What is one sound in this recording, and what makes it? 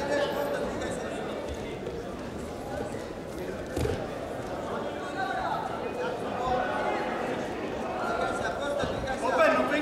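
Wrestling shoes squeak and thump on the mat.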